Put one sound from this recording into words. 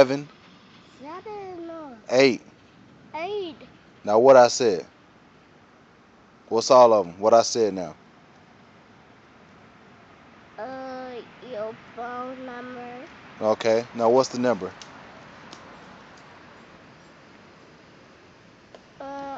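A young boy talks close by in short bursts.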